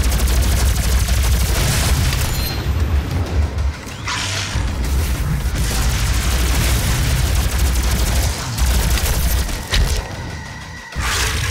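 A plasma gun fires rapid buzzing shots.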